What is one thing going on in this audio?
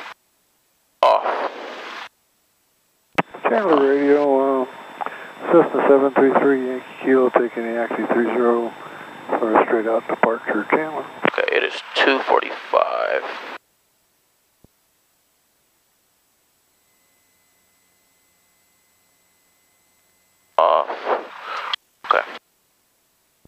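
A young man speaks calmly over an aircraft intercom.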